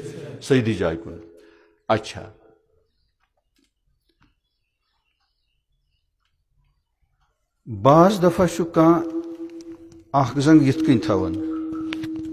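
An elderly man chants loudly in a melodic, drawn-out voice.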